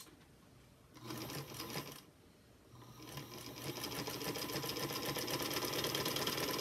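A sewing machine runs in quick, steady bursts.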